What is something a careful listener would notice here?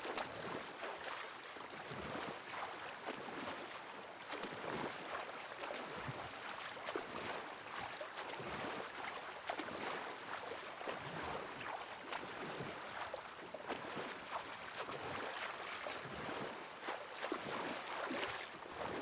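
A paddle splashes rhythmically through calm water.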